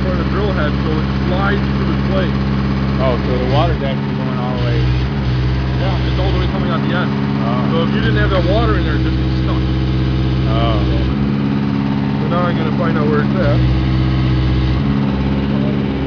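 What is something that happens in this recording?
A drilling machine's engine labours and eases off in turn.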